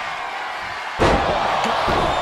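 A heavy body slams onto a wrestling mat with a loud thud.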